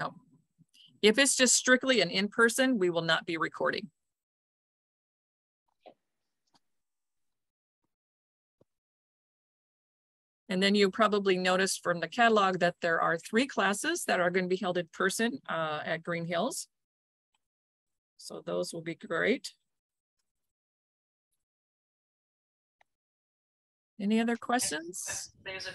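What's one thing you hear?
An older woman speaks calmly over an online call, with pauses.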